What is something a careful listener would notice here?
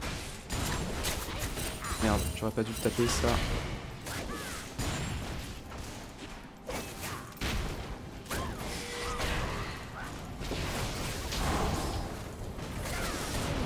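Game characters' attacks clash and thud.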